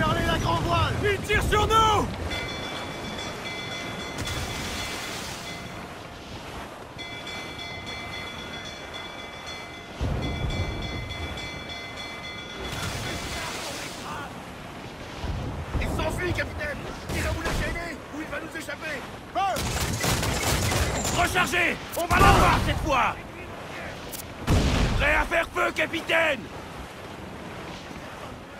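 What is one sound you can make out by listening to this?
Wind blows hard across open water.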